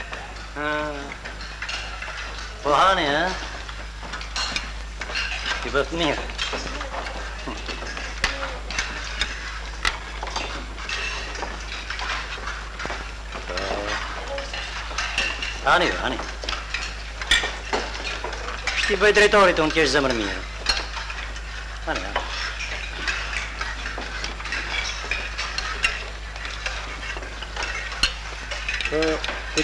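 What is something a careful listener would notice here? Metal spoons clink against metal bowls.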